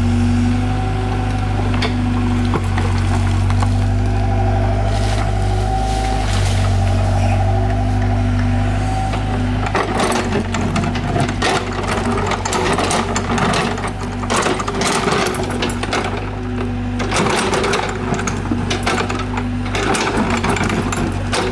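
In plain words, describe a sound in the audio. A diesel excavator engine rumbles and whines steadily close by.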